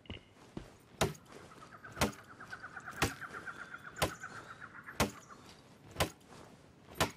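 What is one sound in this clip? An axe chops into a tree trunk with heavy thuds.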